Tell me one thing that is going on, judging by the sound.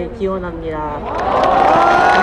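A crowd cheers and claps.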